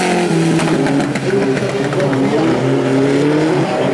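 A rally car engine roars and revs hard as the car slides through a loose gravel bend.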